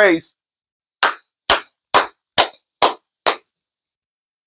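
A man claps his hands in a steady beat.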